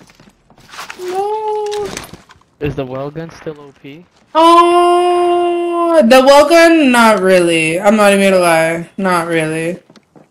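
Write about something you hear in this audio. A young man sings loudly and playfully into a close microphone.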